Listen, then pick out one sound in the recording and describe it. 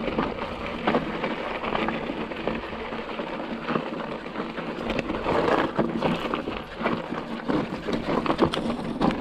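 Bicycle tyres roll and crunch over a rocky dirt trail.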